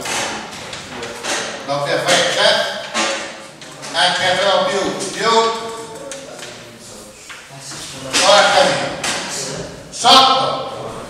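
An elderly man speaks steadily, lecturing in a room with some echo.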